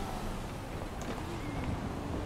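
A door swings open.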